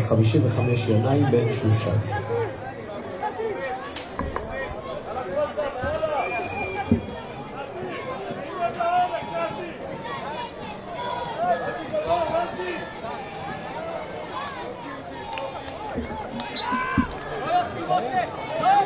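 Men shout and call out across an open outdoor ground.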